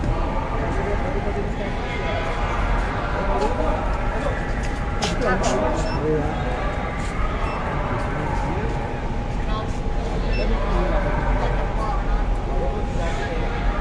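A crowd of men and women talk over each other close by.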